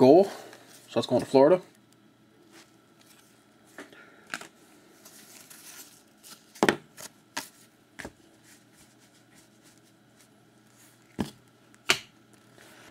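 Trading cards slide and tap against each other.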